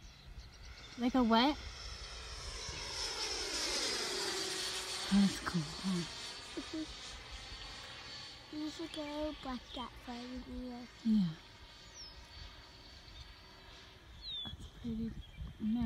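An electric ducted-fan model jet whines as it passes overhead, its pitch dropping as it flies away.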